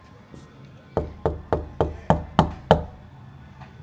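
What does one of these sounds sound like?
A hand knocks on a door several times.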